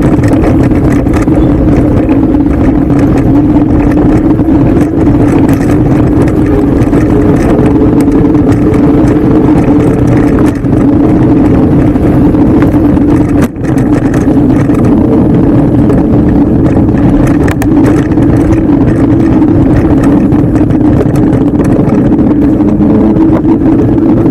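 An electric bike motor hums steadily at close range.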